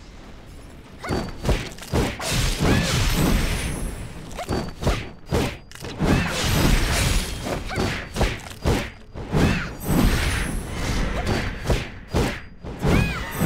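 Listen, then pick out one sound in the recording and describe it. Blades slash and strike hard in a fast, noisy fight.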